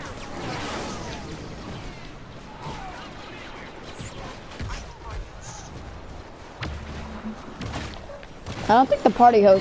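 Laser blasters fire in quick zapping bursts.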